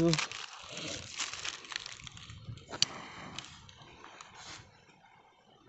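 A plastic wrapper crinkles and rustles in someone's hands.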